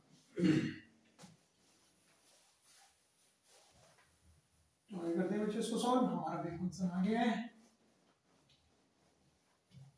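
A cloth eraser rubs across a whiteboard.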